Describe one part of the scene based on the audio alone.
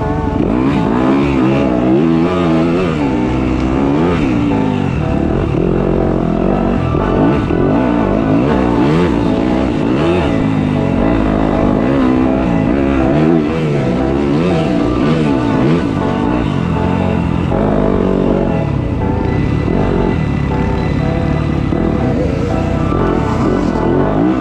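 A dirt bike engine revs up and down loudly and close by.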